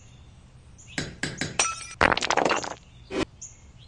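Ice cracks and shatters into pieces.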